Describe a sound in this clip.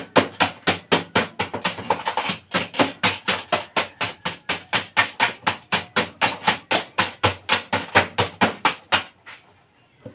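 A metal tool scrapes and taps rapidly against a frozen metal canister.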